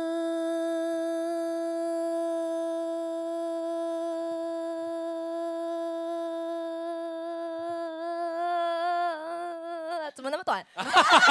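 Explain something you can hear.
A young woman holds a long, steady sung note into a microphone, wavering near the end.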